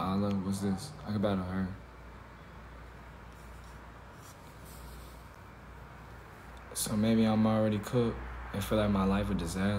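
A young man talks casually, close to a phone microphone.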